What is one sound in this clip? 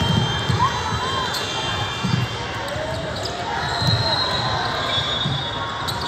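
A basketball bounces on a wooden court with loud thuds.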